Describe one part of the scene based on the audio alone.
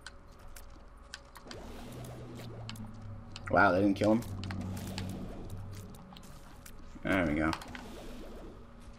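Small shots pop and splat in quick succession.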